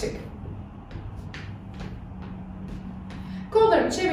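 Feet thump lightly on the floor as a woman jumps.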